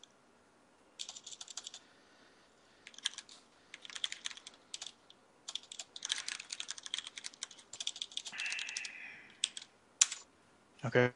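Keys clatter on a keyboard in quick bursts.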